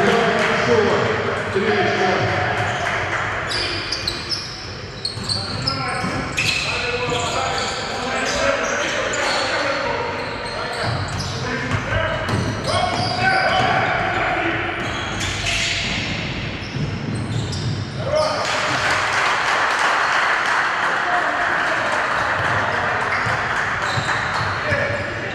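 A crowd of spectators cheers and chatters.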